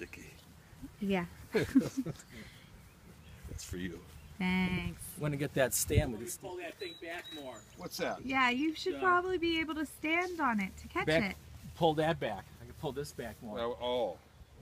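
A man talks close by, calmly and with pauses.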